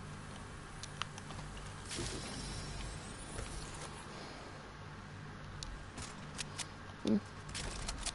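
Small clicking chimes sound as items are picked up.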